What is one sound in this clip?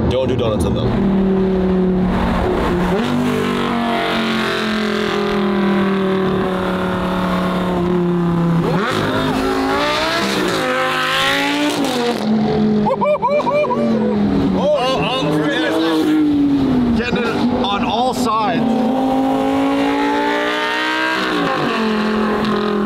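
A sports car engine roars loudly close by, its pitch climbing and dropping as it revs and shifts gears.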